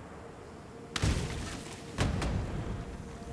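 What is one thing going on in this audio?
A fiery spell bursts with a loud whoosh.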